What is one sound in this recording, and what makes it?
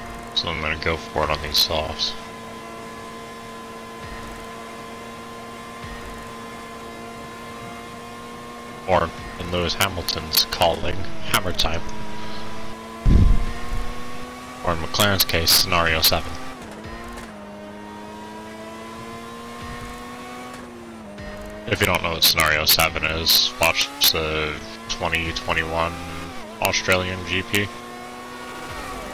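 A racing car engine hums steadily, its pitch rising and dipping slightly.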